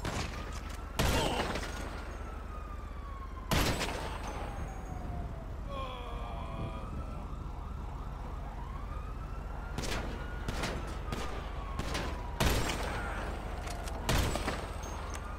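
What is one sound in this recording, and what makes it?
A sniper rifle fires single loud shots.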